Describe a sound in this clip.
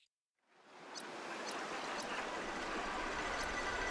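Short menu clicks tick several times.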